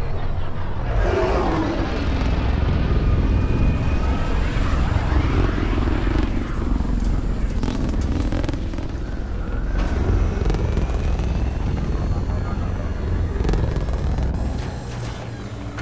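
A spaceship's engines roar as it rises and flies.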